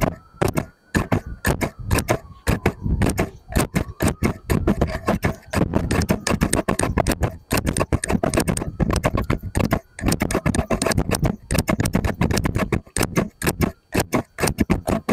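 Scissors snip open and shut again and again.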